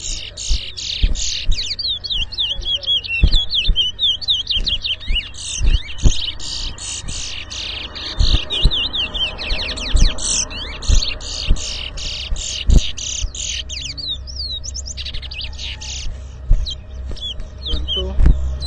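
A caged songbird sings loud, rapid whistling and chattering phrases close by.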